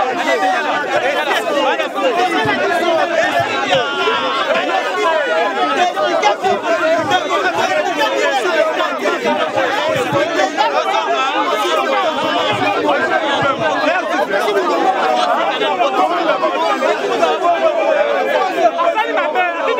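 A man shouts with animation close by.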